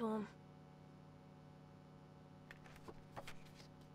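A paper card rustles as it opens.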